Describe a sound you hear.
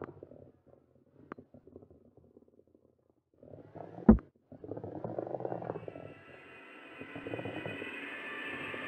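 A heavy ball rolls and rumbles along a wooden track.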